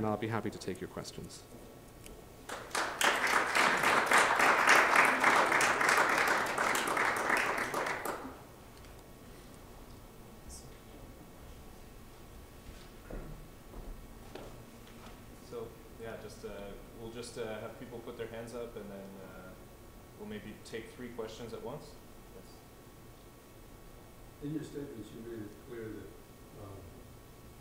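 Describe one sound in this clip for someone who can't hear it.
A young man speaks calmly through a microphone in a room.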